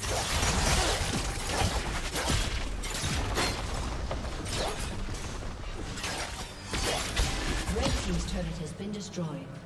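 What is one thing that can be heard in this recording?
Magic spells whoosh and burst in quick succession during a game battle.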